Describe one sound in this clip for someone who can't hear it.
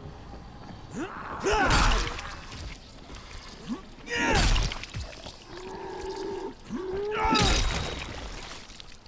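A creature snarls and growls loudly.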